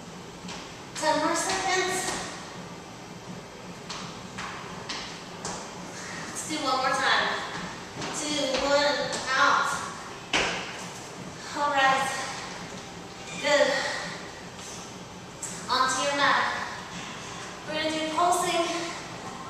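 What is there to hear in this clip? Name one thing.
A woman talks with animation in a slightly echoing room.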